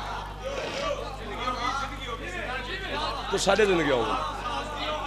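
A man speaks passionately into a microphone, his voice carried through loudspeakers with a slight echo.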